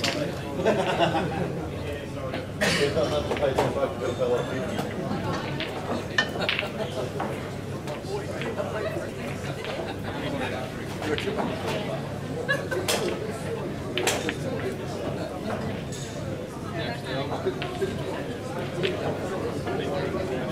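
Pool balls clack together on a distant table.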